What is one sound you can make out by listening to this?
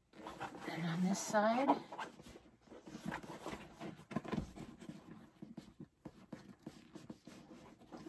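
A leather bag rustles and creaks as it is handled.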